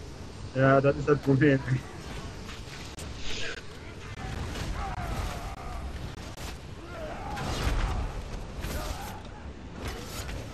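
Blades clash and strike repeatedly.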